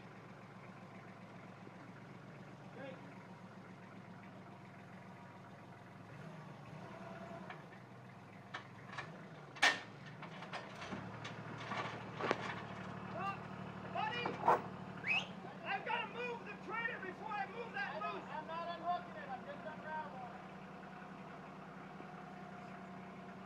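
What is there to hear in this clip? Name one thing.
A tractor engine idles with a low steady rumble.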